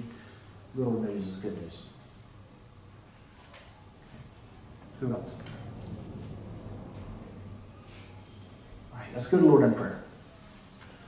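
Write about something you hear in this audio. A man speaks into a microphone in a large echoing hall.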